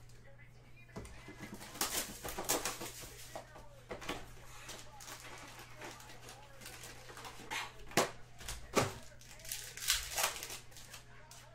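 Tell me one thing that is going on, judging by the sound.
Plastic wrapping crinkles and tears as a pack is opened.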